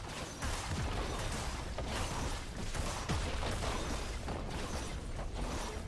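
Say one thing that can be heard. Magic spells whoosh and zap in quick bursts.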